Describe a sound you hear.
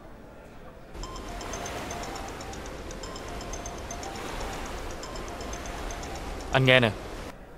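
Waves wash gently on a beach.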